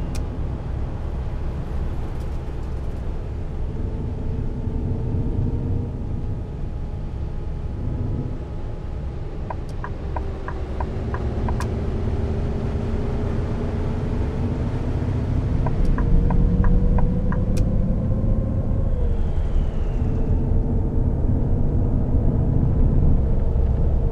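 A bus engine drones steadily, its pitch slowly rising and falling.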